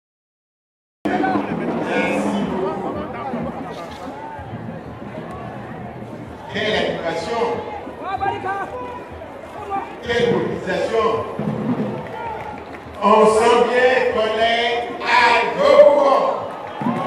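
An elderly man speaks with animation into a microphone over loudspeakers.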